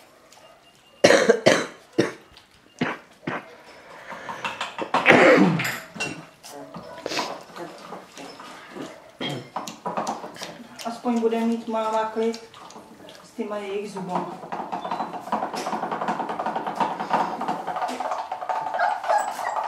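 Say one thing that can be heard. Puppies lap and slurp milk from a bowl.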